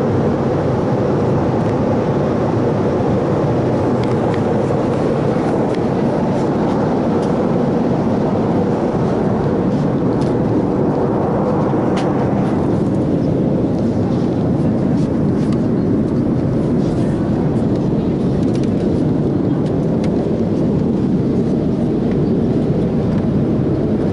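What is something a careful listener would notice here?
A loud, steady engine roar fills an aircraft cabin.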